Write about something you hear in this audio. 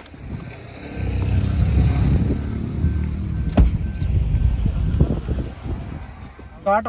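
A car engine starts and rumbles.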